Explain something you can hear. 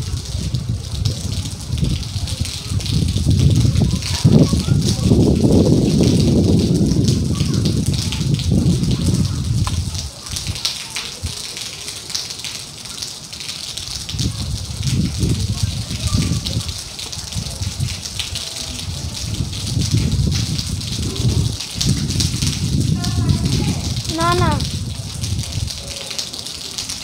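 Strong wind gusts roar outdoors, rising and falling.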